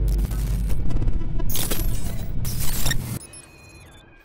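Loud digital static crackles and buzzes, then cuts off.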